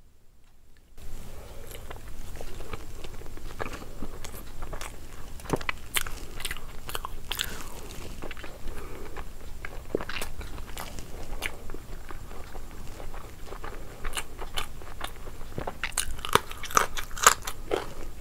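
A young woman chews food wetly and smacks her lips close to a microphone.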